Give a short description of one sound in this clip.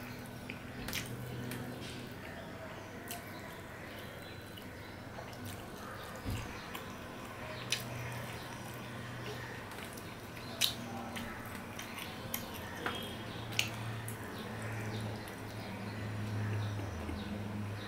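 Fingers squelch and mix rice on a metal plate.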